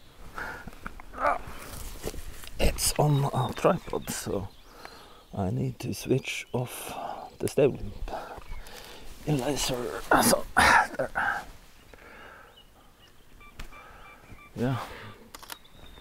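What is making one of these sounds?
A middle-aged man talks casually close by.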